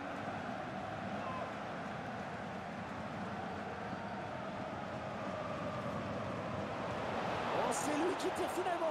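A large stadium crowd roars steadily and swells louder toward the end.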